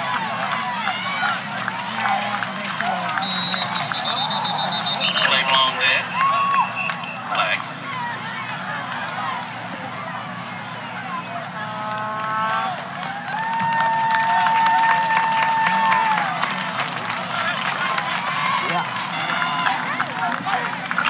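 A crowd chatters and cheers outdoors.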